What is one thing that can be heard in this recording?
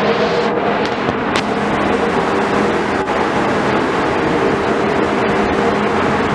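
Wind blows across an open deck.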